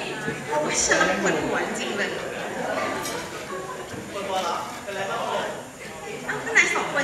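A young woman talks cheerfully into a microphone over a loudspeaker.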